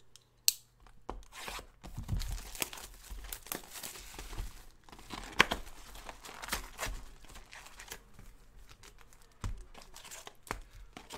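Cardboard and plastic wrapping rustle and crinkle as hands open a box.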